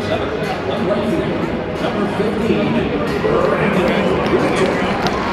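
A large crowd chatters and murmurs in a large echoing stadium.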